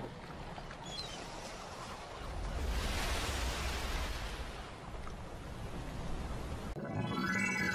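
Waves wash in over wet sand.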